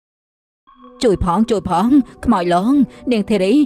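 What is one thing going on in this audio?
A woman speaks with animation, close up.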